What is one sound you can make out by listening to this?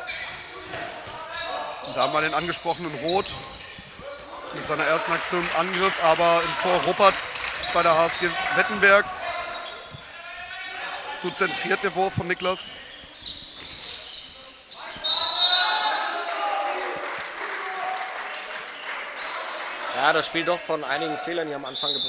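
Sneakers squeak on the floor of an echoing hall.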